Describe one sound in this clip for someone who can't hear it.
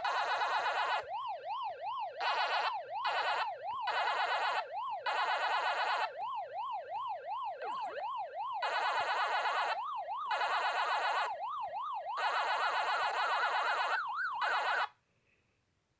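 A rising and falling electronic siren tone warbles repeatedly.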